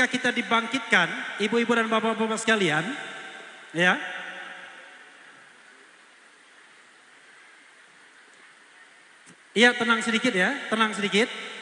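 A boy sings loudly through a microphone in an echoing hall.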